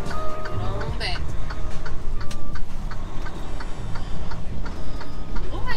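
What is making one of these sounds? A truck engine rumbles steadily from inside the cab as the truck drives slowly.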